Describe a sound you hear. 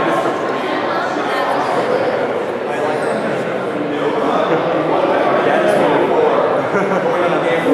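A crowd of people chatter all around in a large echoing hall.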